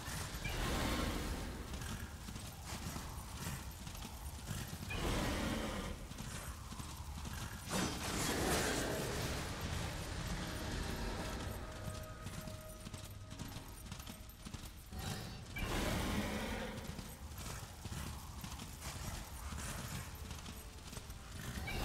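Hooves gallop steadily.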